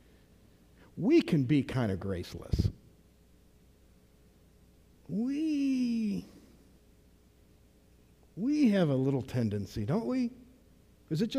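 A middle-aged man speaks calmly through a microphone in an echoing hall, pausing between phrases.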